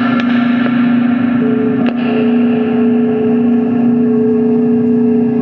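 Electronic synthesizer tones drone steadily.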